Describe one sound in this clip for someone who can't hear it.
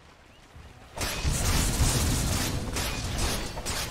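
Magic spells crackle and whoosh in a video game battle.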